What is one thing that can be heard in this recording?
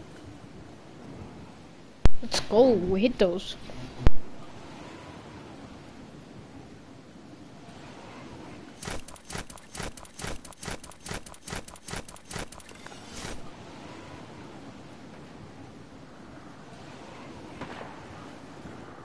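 Wind rushes softly and steadily during a glide through the air.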